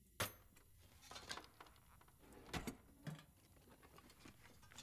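A drawer rattles as it is searched.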